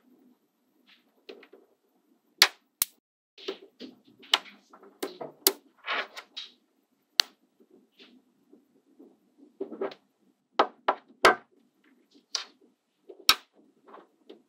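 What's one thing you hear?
Small metal balls click and clack sharply as they snap together.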